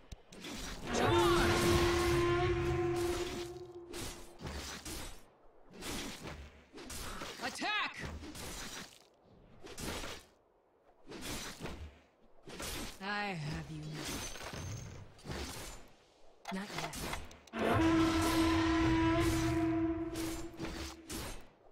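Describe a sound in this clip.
Magic spells ring out with bright, humming tones.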